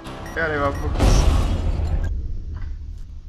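A loud explosion bangs and rings out.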